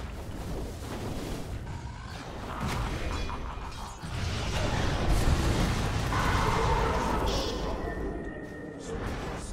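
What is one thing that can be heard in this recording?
Magic blasts and weapon clashes of a game battle crackle and boom.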